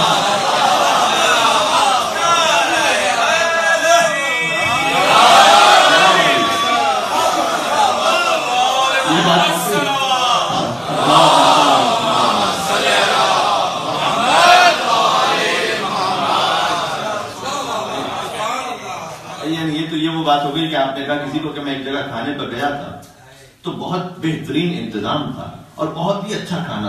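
A young man speaks with animation into a microphone, heard through a loudspeaker in an echoing hall.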